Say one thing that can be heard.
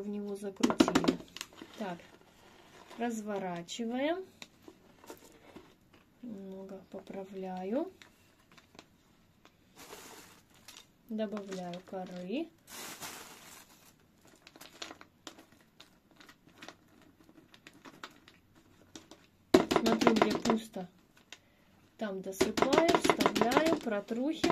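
A thin plastic pot crinkles as it is handled.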